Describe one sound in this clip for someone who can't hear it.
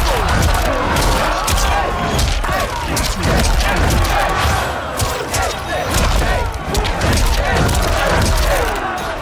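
Punches and kicks land with heavy thuds and cracks in a fast fight.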